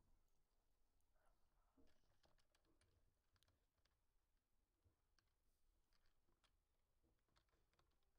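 Sharp hit sounds click in quick bursts.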